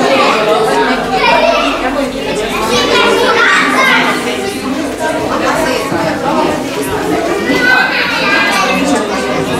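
A crowd of adults chatters all around in a crowded room.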